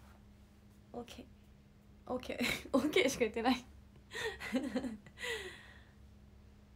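A young woman talks and laughs cheerfully, close by.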